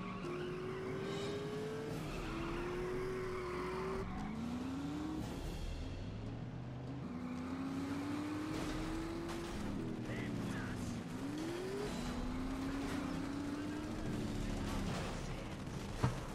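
A racing car engine revs loudly, its whine rising and falling.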